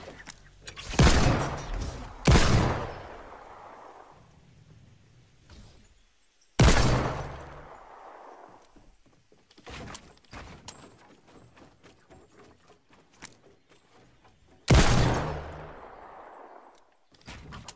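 Pistol shots crack, each followed by a long rolling echo.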